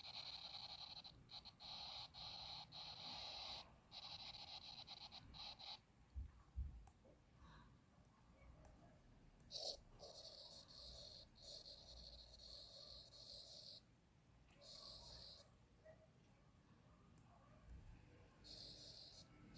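A pen tip scratches and squeaks across a tablet's glass.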